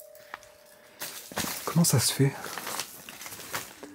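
Crumpled paper rustles and crinkles.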